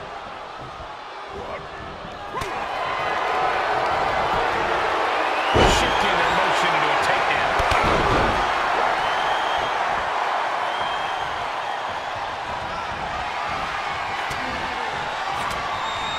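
A large crowd cheers and roars in a big arena, swelling louder.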